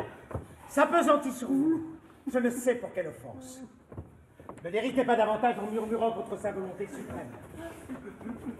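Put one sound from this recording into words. A man sings loudly, his voice echoing in a large hall.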